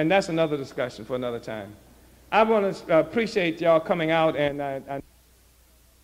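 An elderly man speaks calmly and clearly.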